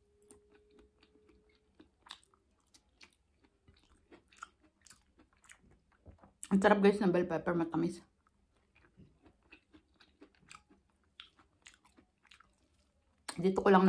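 A young woman chews food with wet smacking sounds close by.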